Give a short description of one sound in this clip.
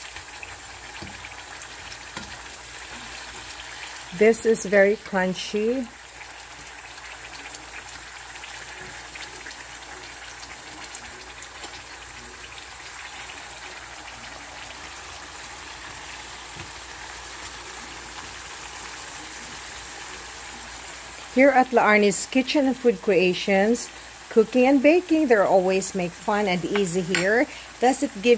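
Oil sizzles steadily in a frying pan.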